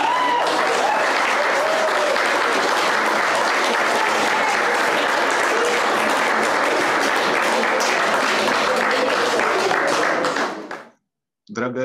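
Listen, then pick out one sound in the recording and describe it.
A woman sings into a microphone over loudspeakers.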